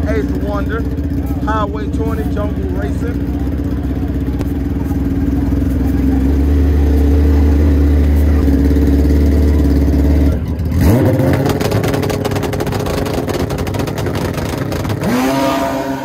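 A motorcycle engine idles loudly and revs up close by.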